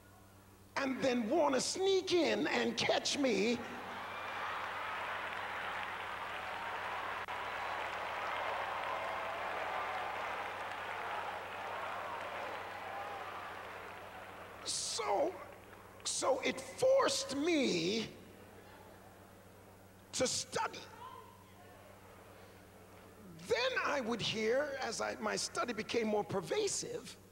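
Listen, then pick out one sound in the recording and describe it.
A man preaches forcefully into a microphone in a large echoing hall.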